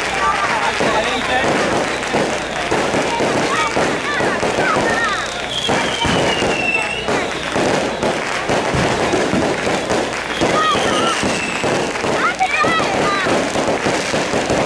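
A large crowd of men and women chatters and shouts loudly outdoors.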